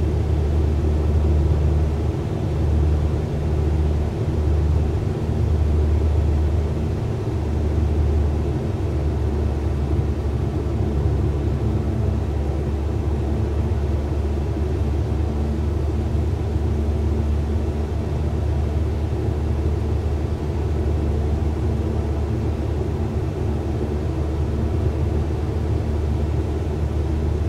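A small plane's propeller engine drones steadily with a deep hum.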